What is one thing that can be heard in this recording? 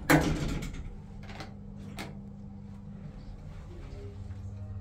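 An elevator motor hums steadily.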